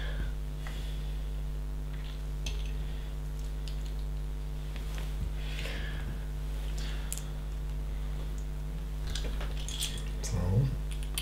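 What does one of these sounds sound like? Small plastic bricks click and rattle as hands sort through them.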